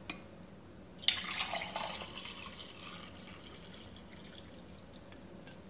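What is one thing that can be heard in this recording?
Coffee pours and splashes into a mug.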